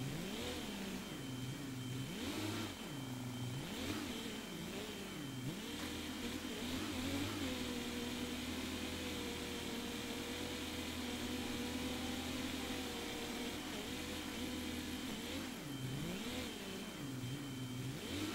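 A diesel tractor engine runs, rising and falling in pitch and then holding steady.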